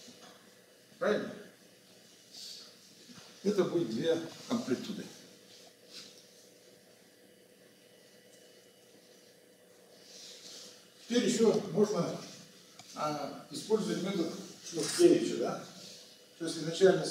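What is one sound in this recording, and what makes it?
An elderly man lectures in a calm voice, with pauses, in a room with a slight echo.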